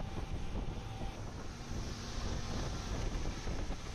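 Water splashes and sprays against a speeding boat's hull.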